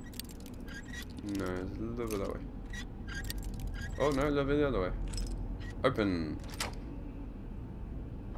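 A metal lock clicks and scrapes as it is picked.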